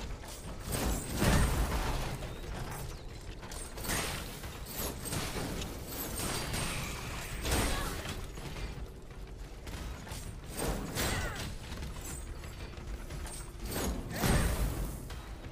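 Fiery blasts boom loudly.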